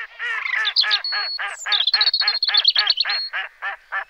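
A bird splashes into the water.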